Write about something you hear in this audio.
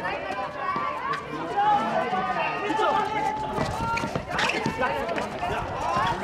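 A ball slaps into players' hands.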